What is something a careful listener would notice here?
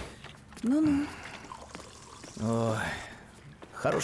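Water pours into a glass.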